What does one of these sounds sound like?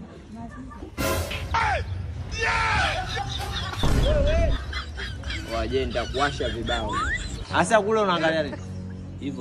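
A young man cries out and wails.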